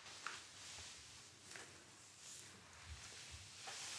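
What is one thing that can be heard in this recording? A cloth rubs softly over paper.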